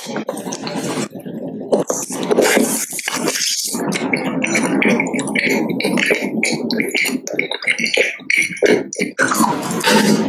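Wet chewing and mouth sounds come up very close.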